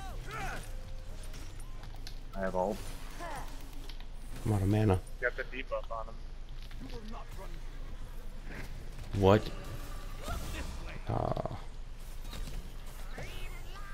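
Video game spell effects burst and clash in short bursts.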